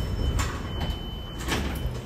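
A lift button clicks as it is pressed.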